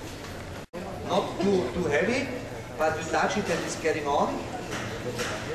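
A man speaks into a microphone through loudspeakers in a large echoing hall.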